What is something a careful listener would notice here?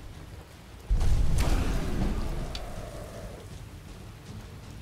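A dragon bellows a deep, booming roar.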